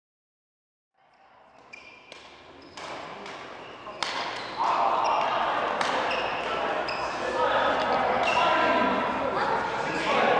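Shuttlecocks are struck with rackets, with sharp pops echoing in a large hall.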